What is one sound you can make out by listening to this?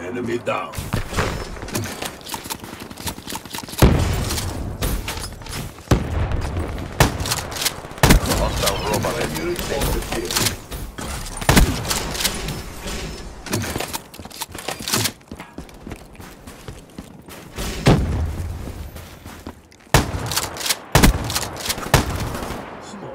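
Gunshots ring out in quick bursts.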